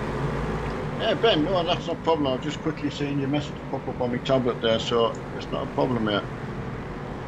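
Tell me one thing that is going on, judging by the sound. A man talks with animation close to a headset microphone.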